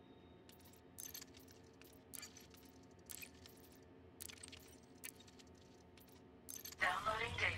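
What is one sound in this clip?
Short electronic clicks sound now and then as menu items are picked.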